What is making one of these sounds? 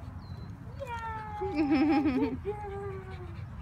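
A dog whines and yelps excitedly.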